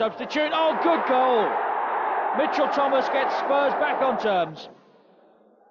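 A large crowd cheers and chants loudly in a stadium.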